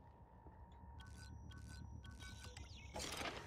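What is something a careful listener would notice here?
Keypad buttons beep as a code is entered.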